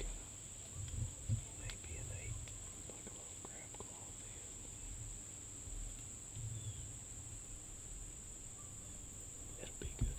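Deer hooves rustle softly on dry leaves.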